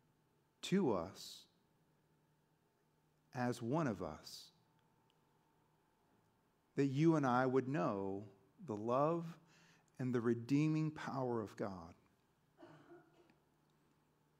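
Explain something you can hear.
A man speaks calmly through a microphone, with pauses.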